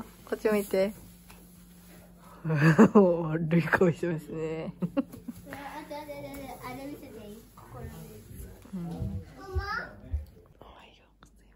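A young girl talks and laughs with animation close by.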